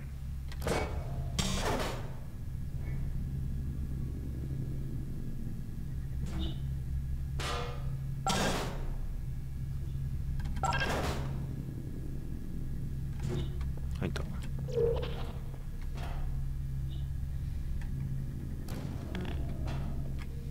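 Short whooshing bursts sound as portals are fired.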